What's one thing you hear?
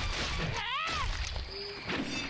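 A magical blast bursts with a rising whoosh.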